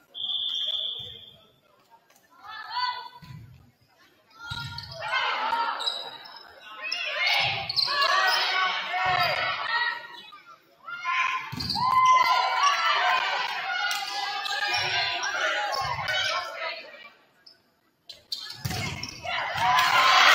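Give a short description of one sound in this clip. A volleyball is struck with dull thumps, again and again.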